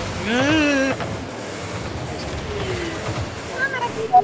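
A car engine roars and whooshes as a game car boosts.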